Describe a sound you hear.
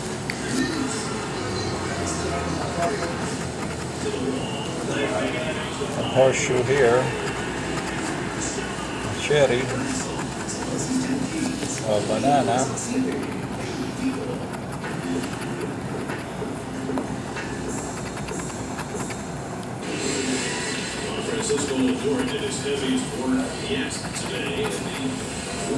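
A metal key scratches and scrapes across a paper card.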